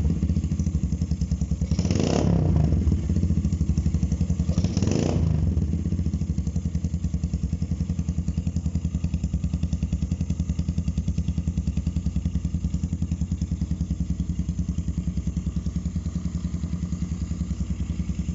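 A motorcycle engine idles close by with a steady, rapid thumping from the exhaust.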